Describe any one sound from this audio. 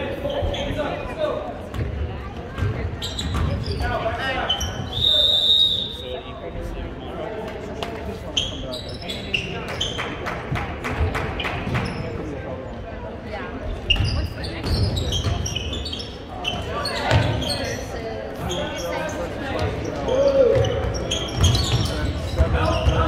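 A crowd of spectators talks and cheers in a large echoing gym.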